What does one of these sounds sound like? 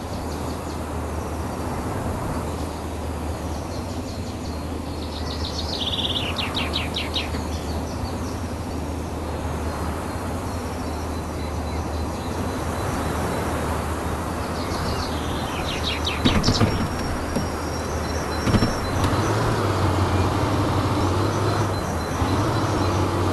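A heavy truck engine drones under load.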